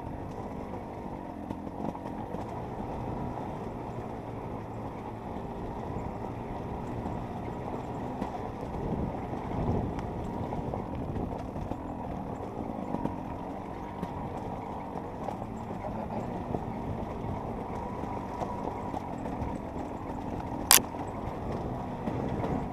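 A dirt bike engine buzzes and revs steadily up close.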